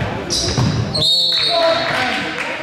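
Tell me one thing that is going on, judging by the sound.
A referee blows a sharp whistle in an echoing gym.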